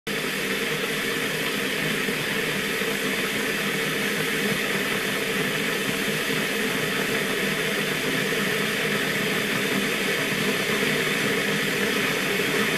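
An electric kettle rumbles and hisses steadily as water heats, growing slightly louder.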